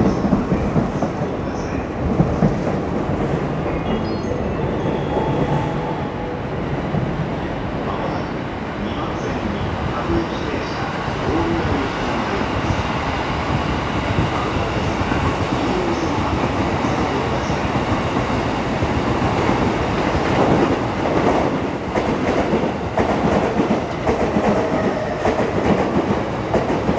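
An electric train approaches and rumbles past close by on the tracks.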